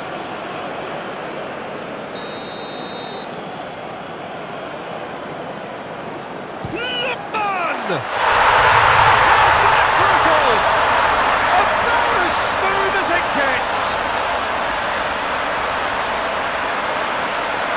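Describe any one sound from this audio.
A stadium crowd murmurs and chants steadily.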